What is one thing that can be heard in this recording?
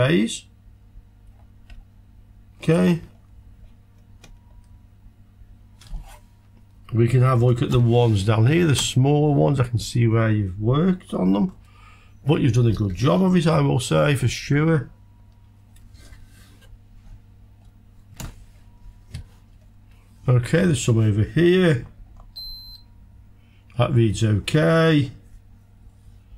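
A man speaks calmly close to a microphone, in short bursts with pauses.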